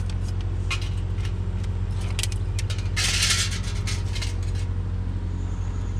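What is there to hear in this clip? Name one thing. Plastic crinkles in the jaws of a litter grabber.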